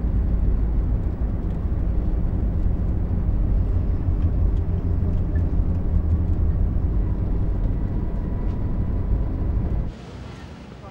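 A bus engine rumbles steadily.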